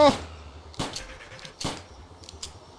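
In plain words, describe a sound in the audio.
A gun fires a few sharp shots.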